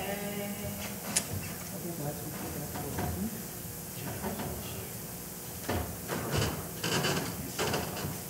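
A man talks quietly in an echoing hall.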